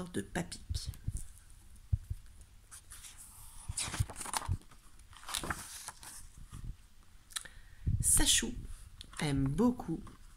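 Stiff pages of a book turn with a soft flap and rustle.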